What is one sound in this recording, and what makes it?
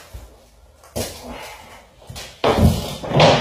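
A large board scrapes and bumps as it is moved.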